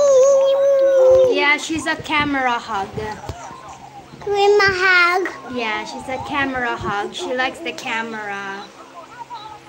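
A small child shouts and babbles excitedly close by.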